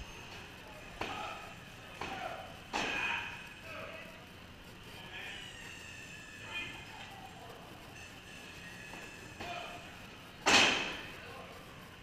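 Heavy thuds and bangs echo through the hall.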